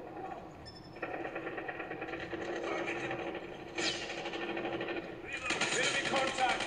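Gunfire from a shooting game plays through a tablet's speakers.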